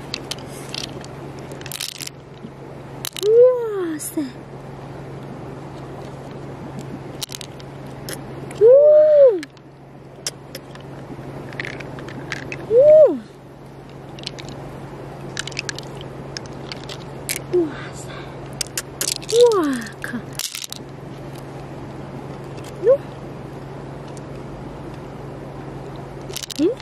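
Fingers squelch through wet shellfish flesh.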